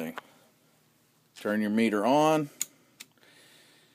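A multimeter's rotary dial clicks as it is turned.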